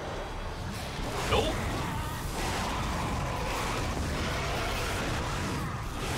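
A creature shrieks close by.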